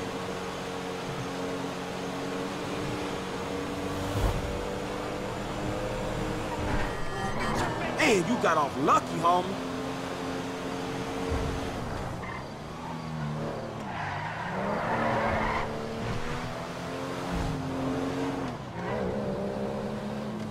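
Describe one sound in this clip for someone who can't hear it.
A car engine hums steadily, rising and falling in pitch.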